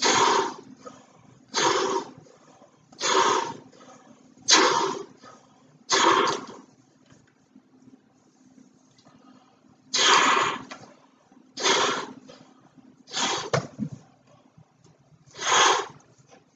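A man blows hard into a large balloon in strong, repeated breaths.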